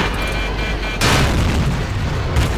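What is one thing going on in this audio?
An explosion blasts close by.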